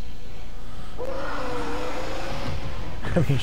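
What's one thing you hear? A monster lets out a deep, drawn-out roar.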